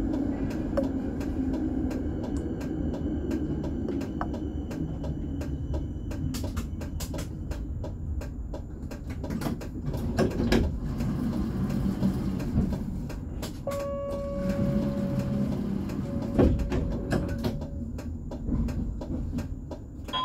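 Tram wheels click and clack over the rail joints.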